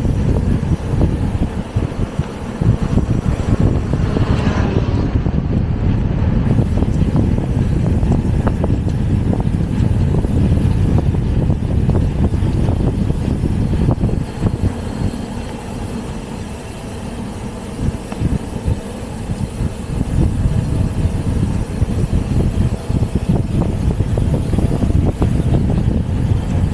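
Wind buffets and rumbles loudly, outdoors.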